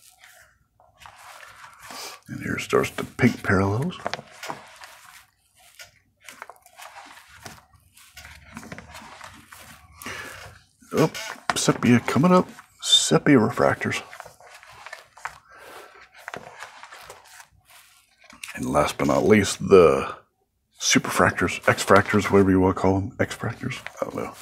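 Plastic binder pages rustle and crinkle as they are turned.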